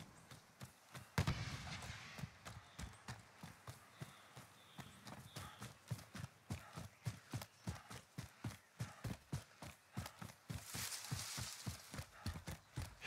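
Footsteps thud quickly and steadily as someone runs over dirt and grass.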